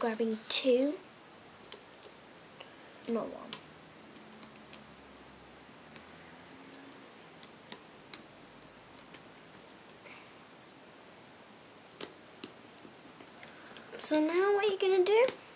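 A small metal hook clicks and taps against plastic pegs.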